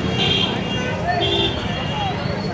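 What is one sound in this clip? Vehicle horns honk in short blasts.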